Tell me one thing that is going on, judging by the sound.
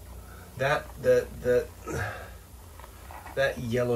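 Water pours from a cup and splashes into a foamy sink.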